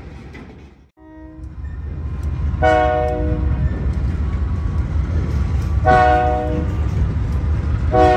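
A train horn blasts loudly several times.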